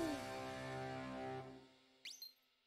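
A cheerful video game jingle plays and ends.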